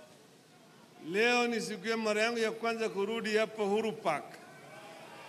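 An elderly man speaks loudly into a microphone over loudspeakers.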